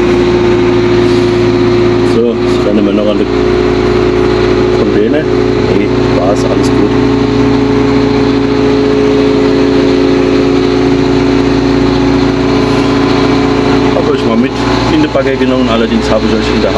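A heavy machine's diesel engine hums steadily from inside a cab.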